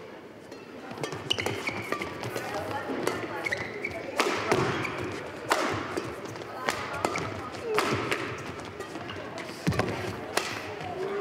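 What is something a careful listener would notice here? Rackets strike a shuttlecock in quick, sharp smacks in a large echoing hall.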